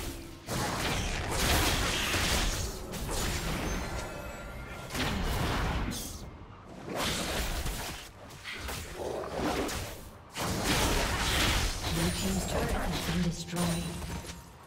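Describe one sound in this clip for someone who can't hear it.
Fantasy game combat effects crackle and burst.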